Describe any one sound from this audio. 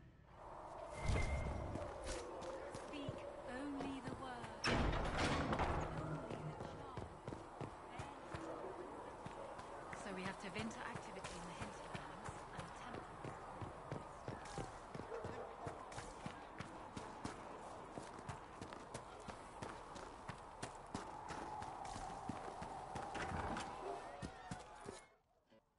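Footsteps crunch quickly over snow and gravel.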